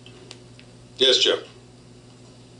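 A man speaks a few loud words in a large room.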